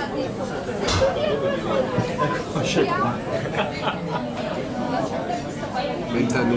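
A crowd of men and women chatter and talk over each other close by.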